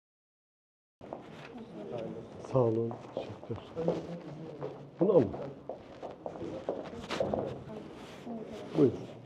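Several men talk at once in a busy, echoing room.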